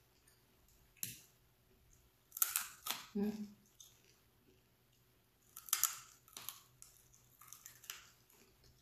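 A young woman chews and crunches food loudly, close up.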